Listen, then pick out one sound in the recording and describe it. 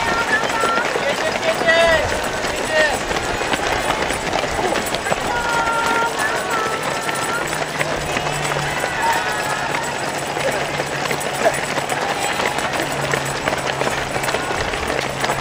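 Many runners' footsteps patter on pavement outdoors.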